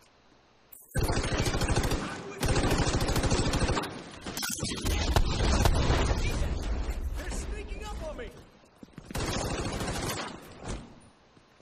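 Gunfire rattles in rapid, loud bursts.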